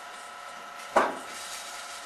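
A rifle fires a single sharp shot nearby.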